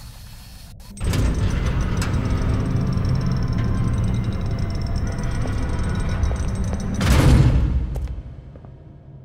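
Footsteps tap across a hard tiled floor.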